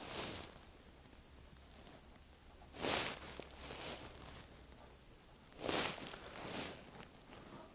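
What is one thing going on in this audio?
A felt-tip pen squeaks and scratches across paper.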